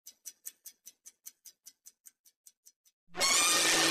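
A stopwatch ticks quickly.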